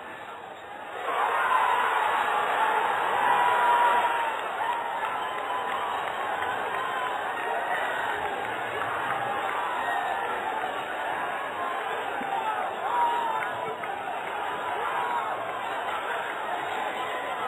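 A crowd of young men shout and cheer excitedly outdoors.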